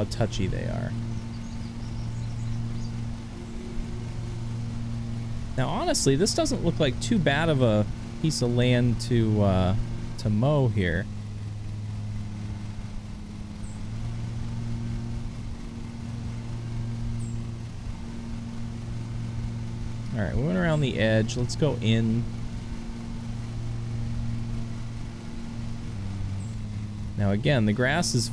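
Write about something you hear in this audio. A lawn mower engine hums steadily.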